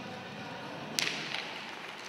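A hockey stick clacks against a puck on the ice.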